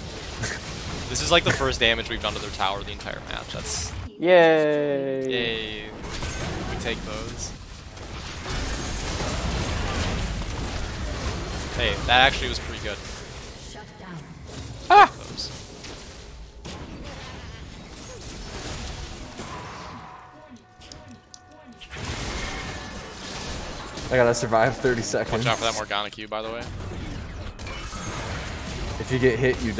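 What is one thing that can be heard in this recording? Magic blasts and impacts crackle in a fast fight.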